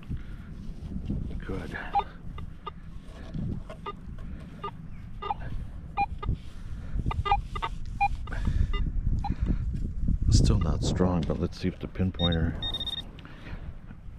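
A metal detector beeps in short electronic tones.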